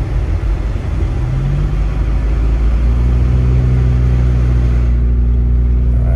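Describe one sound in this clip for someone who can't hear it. Wind rumbles outside a moving car.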